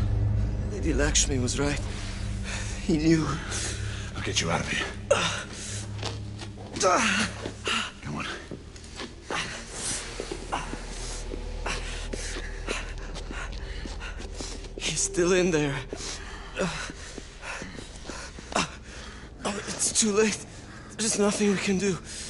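A young man answers in an anxious voice.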